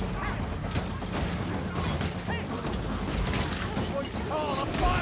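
A sword swings and strikes enemies with sharp metallic hits.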